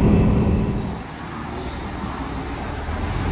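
A train hums quietly while standing at a platform.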